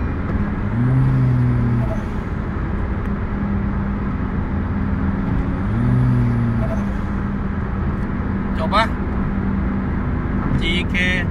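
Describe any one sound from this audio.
Road and wind noise rush steadily inside the car.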